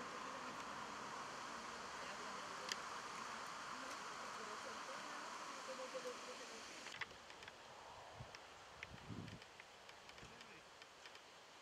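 Men talk quietly at a distance outdoors.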